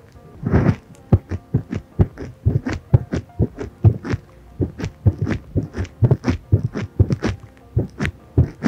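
Fingertips tap and scratch quickly on a microphone, close up.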